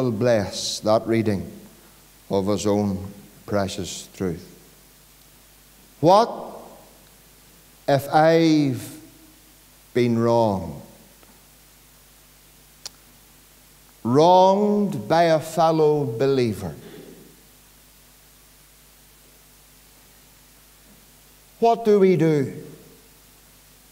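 A middle-aged man preaches into a microphone in phrases with pauses, his voice echoing slightly in a large room.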